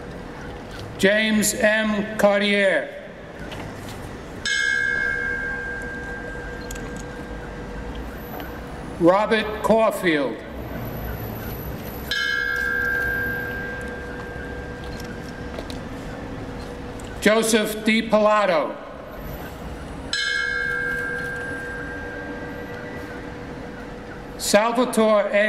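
An elderly man gives a formal speech through a microphone and loudspeaker outdoors, in short phrases with long pauses.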